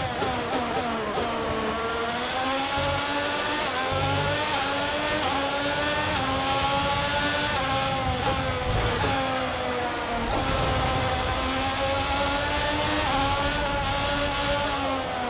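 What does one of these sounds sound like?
A racing car engine screams at high revs, its pitch climbing and dropping sharply with each gear change.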